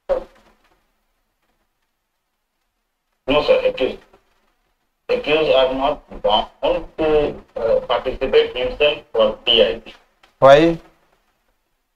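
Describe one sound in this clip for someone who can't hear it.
An older man speaks calmly into a microphone over an online call.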